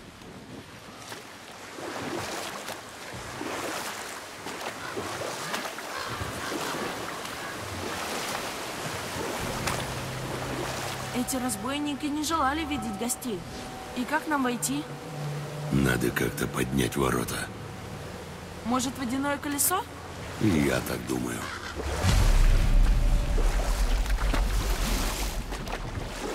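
Water rushes and churns steadily.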